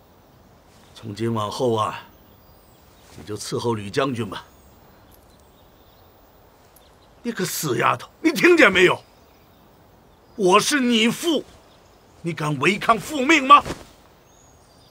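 An elderly man speaks calmly and firmly nearby.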